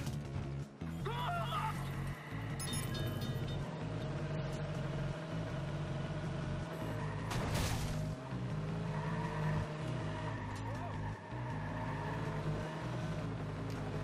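Tyres screech as a car skids through turns.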